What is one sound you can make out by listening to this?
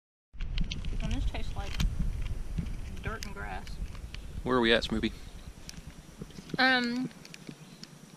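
A young woman speaks calmly close by, outdoors.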